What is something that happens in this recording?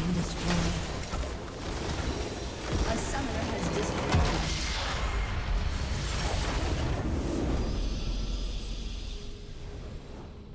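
Game battle effects crash and blast loudly.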